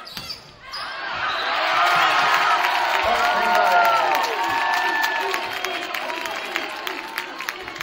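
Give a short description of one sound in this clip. A crowd cheers loudly after a rally.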